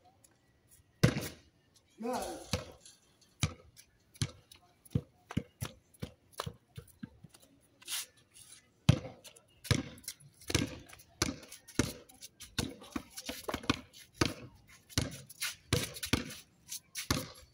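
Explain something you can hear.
A basketball bounces repeatedly on concrete.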